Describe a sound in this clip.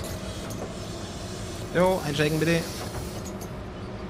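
Bus doors hiss open.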